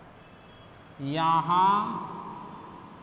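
A man speaks loudly in an echoing room.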